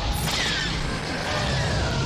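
Laser blasts zap and crackle in quick bursts.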